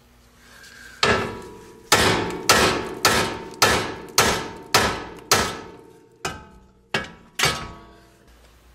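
An air tool rattles in short, sharp bursts.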